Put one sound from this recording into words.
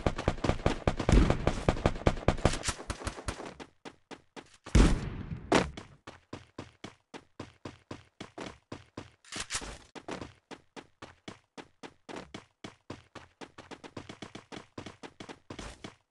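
Game footsteps run quickly over grass.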